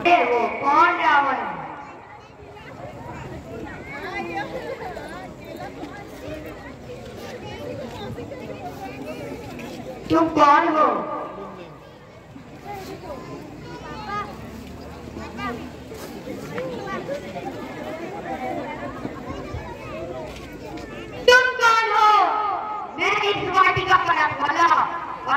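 A crowd of spectators murmurs and chatters.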